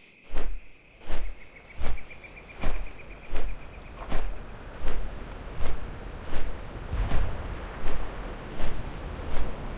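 Large wings beat with steady, rhythmic whooshes.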